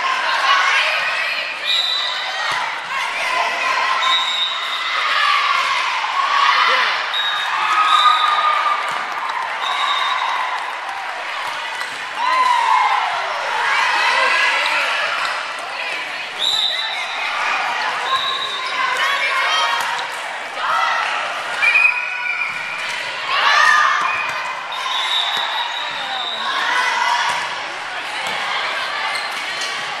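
Teenage girls shout and call out to each other in a large echoing gym.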